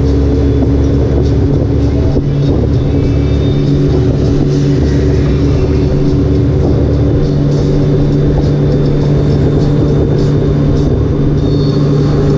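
Wind rushes loudly past a moving motorcycle.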